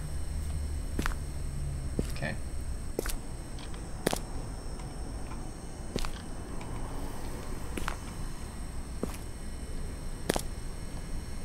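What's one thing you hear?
Footsteps tap slowly on pavement.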